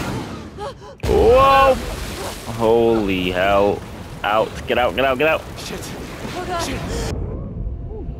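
Water crashes in and rushes loudly.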